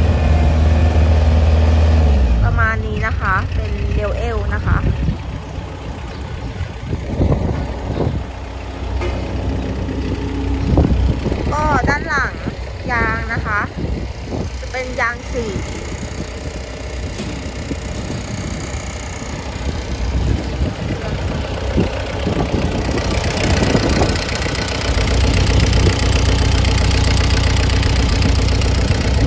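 A diesel engine rumbles with a low, steady idle.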